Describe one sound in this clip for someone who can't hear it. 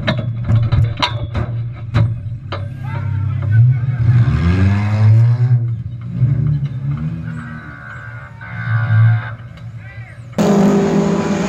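A race car engine revs loudly up close.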